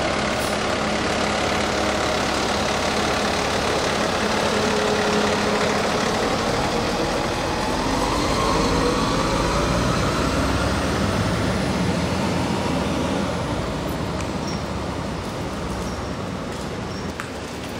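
A fire engine's diesel motor idles with a steady low rumble nearby.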